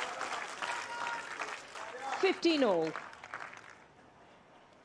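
A crowd applauds and cheers in a large open stadium.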